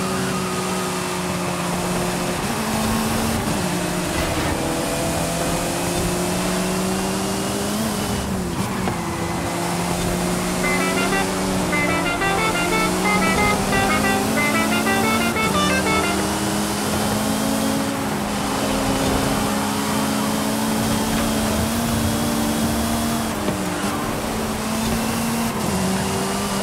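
A racing car engine roars steadily, its pitch rising and dropping with gear shifts.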